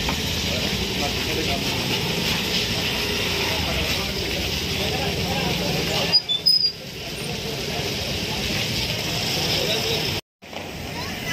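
A crowd of men talk and shout loudly nearby.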